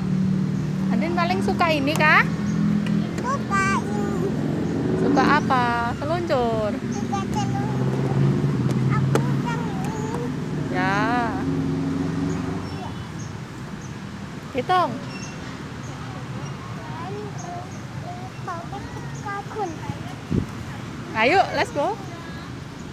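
A young girl speaks and squeals in a high voice close by.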